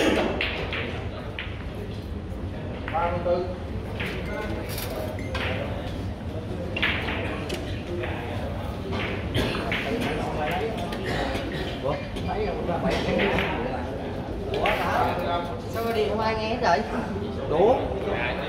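Men talk nearby.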